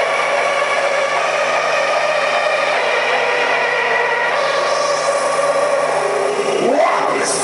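Loud electronic dance music plays through huge speakers in a large echoing hall.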